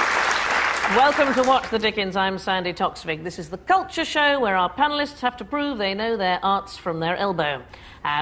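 A middle-aged woman speaks clearly and with animation into a microphone.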